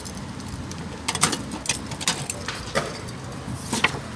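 A metal mailbox door clanks open.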